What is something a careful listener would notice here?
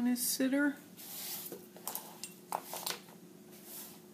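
A hand slides across a sheet of cardboard.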